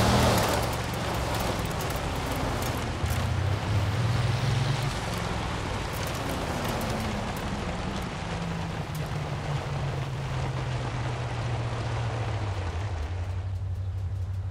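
A powerful car engine roars and slows down.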